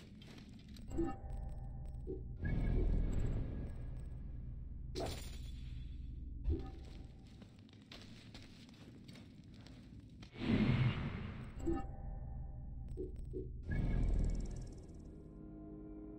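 Soft whooshing tones sound as game menus open and close.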